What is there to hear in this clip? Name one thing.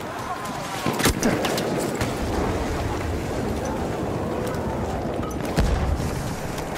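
Gunshots crack in short bursts nearby.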